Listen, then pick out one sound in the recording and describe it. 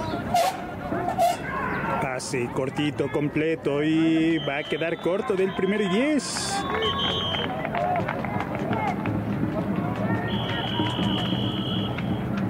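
Young men shout and chatter nearby outdoors.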